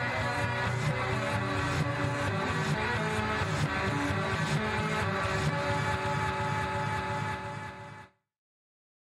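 Bright electronic game music plays loudly.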